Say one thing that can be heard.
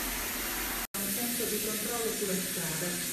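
Water gushes from a tap into a bathtub.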